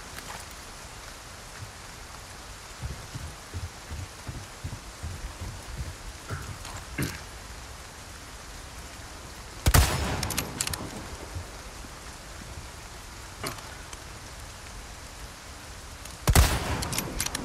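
Rain falls steadily outdoors.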